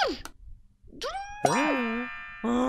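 A bright jackpot chime rings out.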